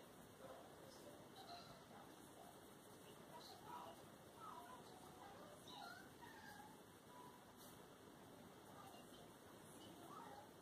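A coloured pencil scratches softly on paper.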